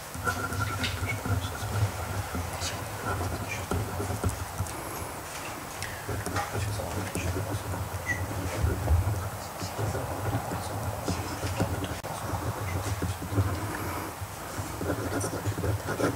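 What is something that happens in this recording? A pen scratches on paper close by.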